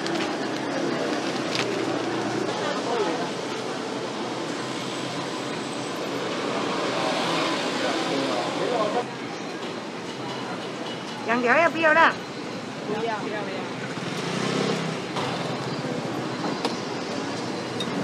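A crowd chatters in the background of a busy outdoor market.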